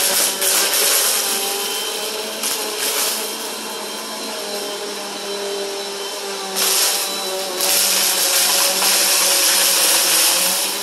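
A vacuum cleaner whirs and drones steadily nearby.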